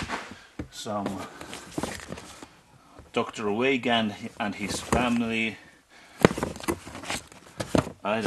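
Books shuffle and knock in a cardboard box.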